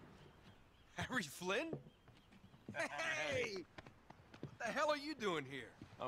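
A second young man answers with surprise and warmth, close by.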